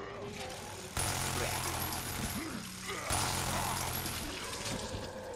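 A zombie groans and snarls loudly nearby.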